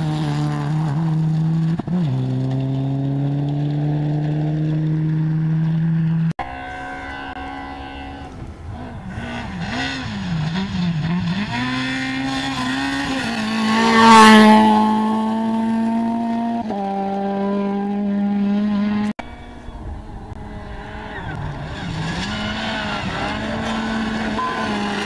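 A rally car engine roars loudly as it speeds past, shifting gears.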